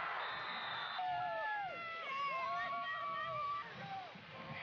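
Children shout and cheer excitedly close by.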